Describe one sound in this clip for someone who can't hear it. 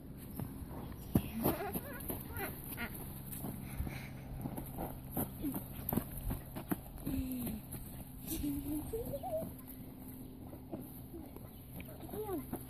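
Puppies whimper and yip close by.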